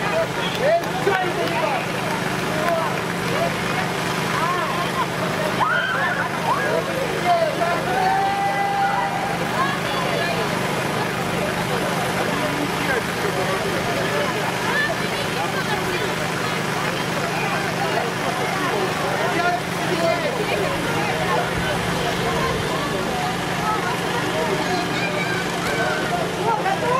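A crowd of men and women chatter and call out nearby outdoors.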